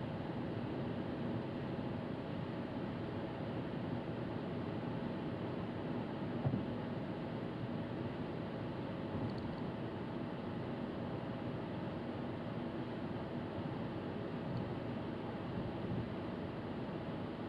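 Tyres roll over the road with a low, steady rumble.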